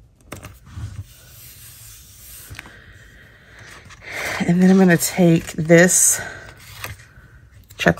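Paper rustles softly as hands slide cards across a table.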